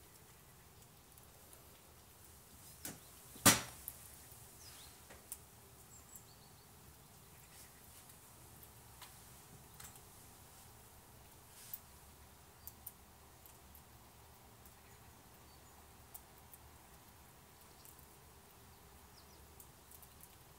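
A squirrel gnaws on a nut close by with faint crunching.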